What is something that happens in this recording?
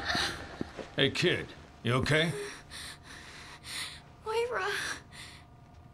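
A young woman sobs and whimpers close by.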